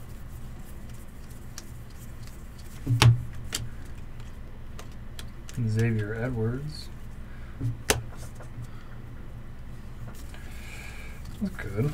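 Trading cards slide and click softly as they are sorted by hand.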